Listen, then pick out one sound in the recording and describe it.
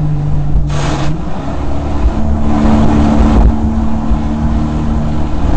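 A boat engine roars steadily.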